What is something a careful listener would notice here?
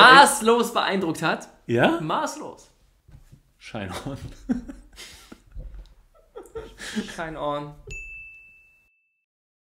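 A second young man laughs and talks close to a microphone.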